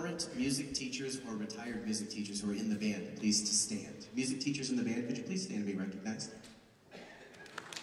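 A man speaks calmly to an audience in a large hall.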